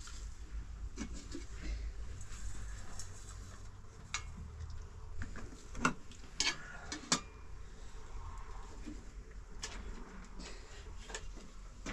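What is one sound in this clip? Metal pots and utensils clink and clatter.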